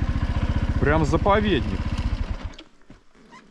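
A motorcycle engine putters and then cuts out.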